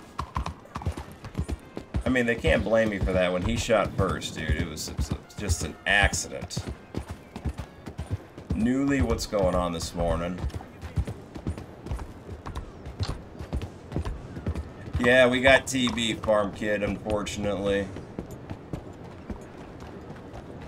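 A horse's hooves clop steadily on the ground.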